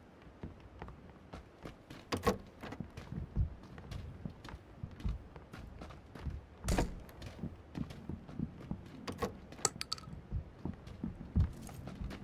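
Footsteps thud on a creaky wooden floor.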